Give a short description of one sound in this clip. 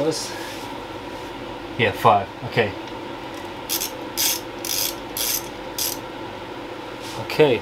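Metal tools clink and scrape against a motorbike's parts.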